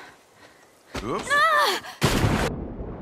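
A young girl shouts out loudly.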